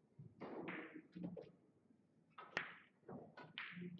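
Billiard balls clack against each other.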